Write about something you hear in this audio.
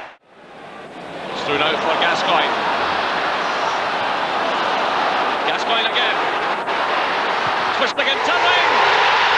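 A large crowd roars loudly in a stadium.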